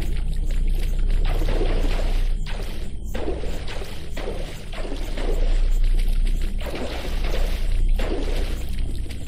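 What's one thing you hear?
Water splashes and swishes with each wading step.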